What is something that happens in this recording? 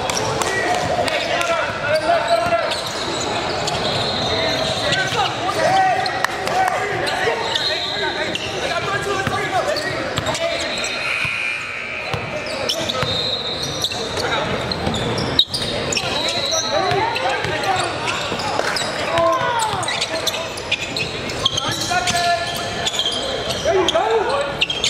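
Players and spectators shout and call out in an echoing hall.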